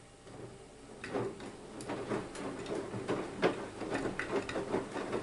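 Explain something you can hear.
Water sloshes and splashes inside a turning washing machine drum.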